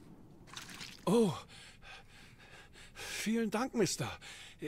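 A young man speaks with relief and gratitude.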